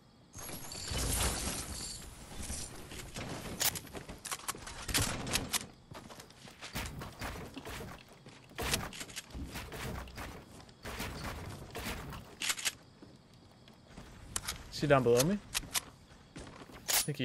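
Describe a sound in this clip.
Wooden walls snap into place with quick clattering knocks.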